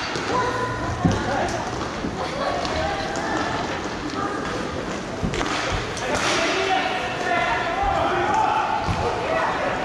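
Young men shout and call out across the rink.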